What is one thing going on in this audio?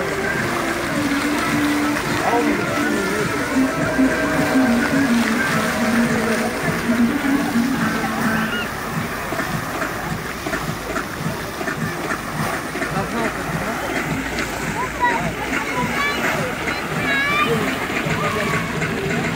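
Fountain jets of water splash and patter steadily into a pool outdoors.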